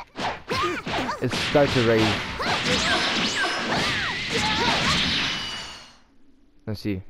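Energy blasts whoosh and roar loudly.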